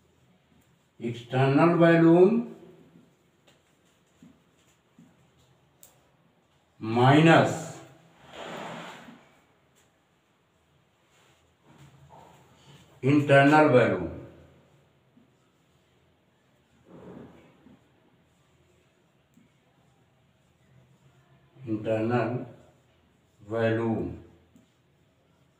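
An elderly man speaks slowly and clearly in short phrases, close by.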